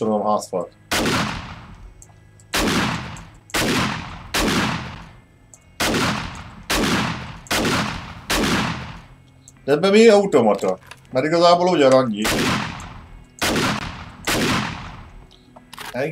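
A rifle fires single loud shots, each ringing out briefly.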